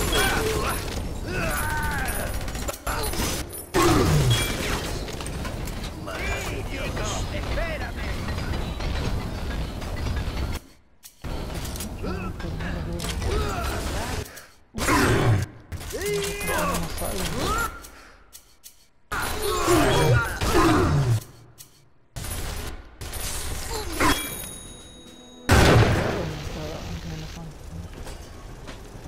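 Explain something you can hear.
Creatures shriek and screech.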